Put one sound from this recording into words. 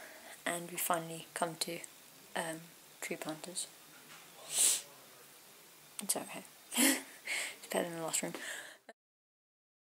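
A young woman talks animatedly and close by.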